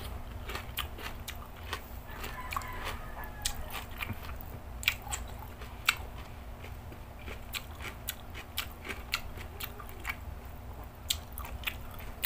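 Fingers pick at food on a plate with soft clicks.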